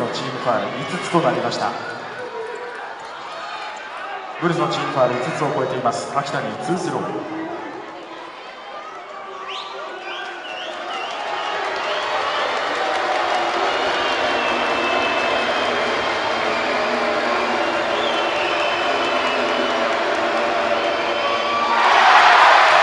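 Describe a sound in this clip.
A large crowd chants and cheers in an echoing arena.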